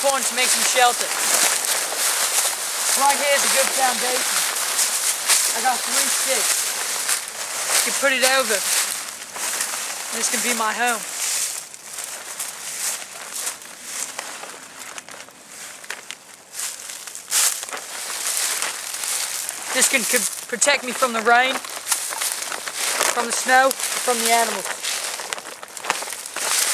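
A plastic tarp rustles and crinkles as it is handled.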